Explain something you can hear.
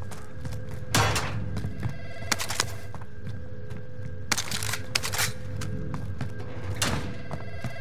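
Gear rattles sharply as items are picked up.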